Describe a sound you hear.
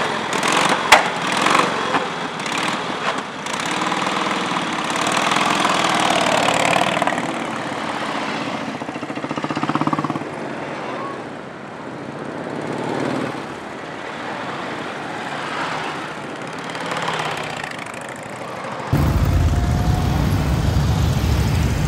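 Motorcycle engines rumble and idle nearby.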